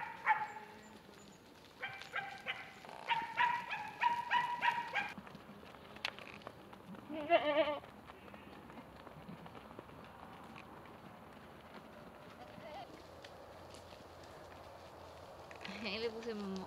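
Goats bleat loudly and repeatedly nearby.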